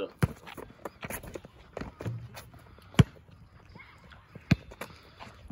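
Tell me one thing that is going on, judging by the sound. A basketball thuds sharply on pavement outdoors, a few times.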